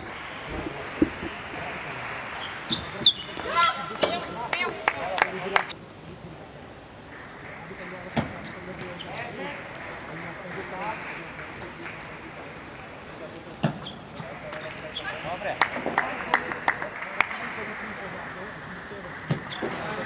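A table tennis ball clicks back and forth between paddles and the table in quick rallies.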